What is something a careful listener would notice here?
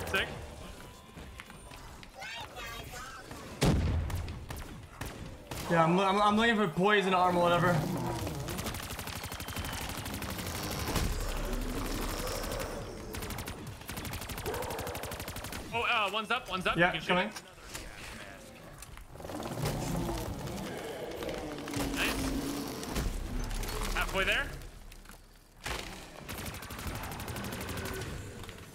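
Guns fire in a game.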